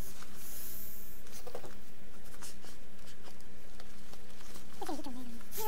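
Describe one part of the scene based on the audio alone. Fabric rustles softly as it is folded and pressed.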